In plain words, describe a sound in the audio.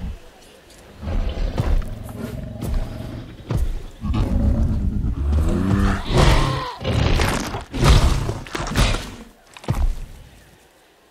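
A large beast growls and roars deeply, close by.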